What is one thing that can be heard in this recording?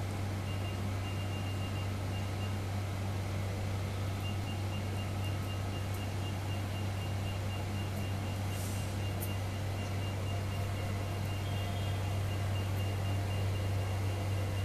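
A machine hums low and steadily.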